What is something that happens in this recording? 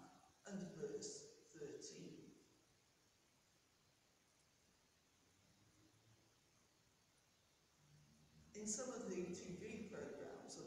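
A woman reads aloud calmly, with a slight echo of a large room.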